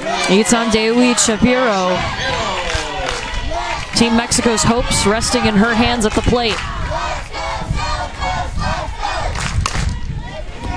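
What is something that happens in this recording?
Young girls chant and sing loudly together.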